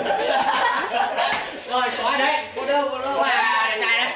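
Young men laugh loudly nearby.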